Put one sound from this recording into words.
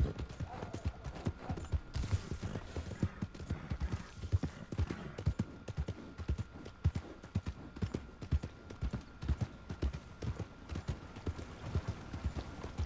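Horse hooves thud steadily on a dirt track.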